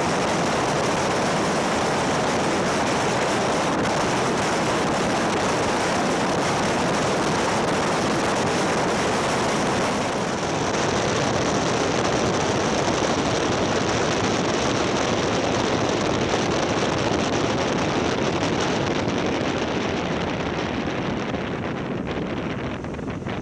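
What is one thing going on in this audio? Wind roars loudly past a moving motorcycle.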